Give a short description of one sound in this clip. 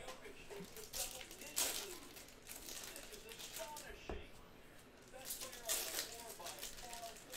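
Foil wrappers tear open sharply.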